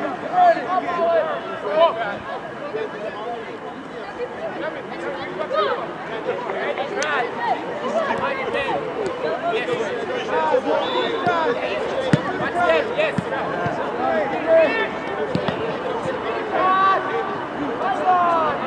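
Young players shout and call to one another across an open field.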